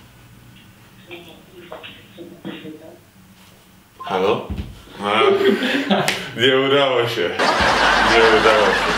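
A young man speaks quietly on a phone, then more loudly.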